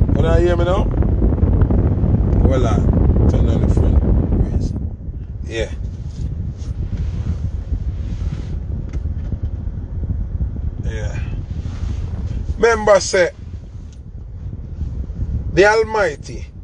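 A young man talks casually and close up, with pauses.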